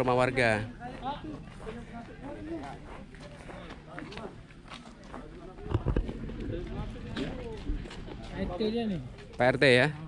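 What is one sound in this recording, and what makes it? An older man talks calmly nearby.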